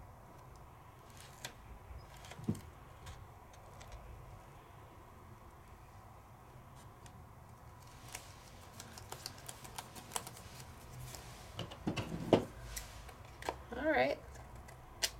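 A stiff card rustles and taps as hands handle it.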